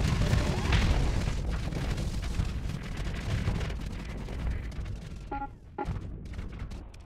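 Rapid laser shots crackle.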